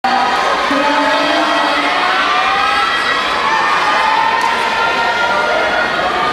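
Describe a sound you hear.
A crowd of people chatter loudly all around in a large echoing hall.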